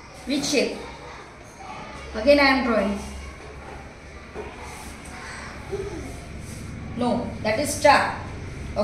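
A woman speaks nearby, calmly and encouragingly.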